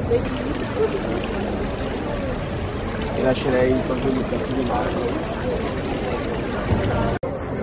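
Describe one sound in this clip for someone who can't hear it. Water splashes steadily in a fountain outdoors.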